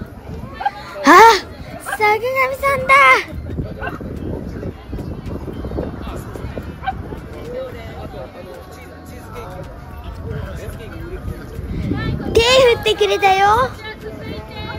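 A young woman exclaims loudly and excitedly nearby.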